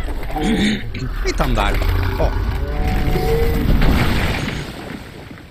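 A large beast stomps heavily with a deep rumble.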